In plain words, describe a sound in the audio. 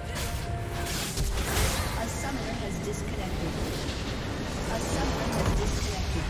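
Magical blasts and crashes ring out in a fierce fight.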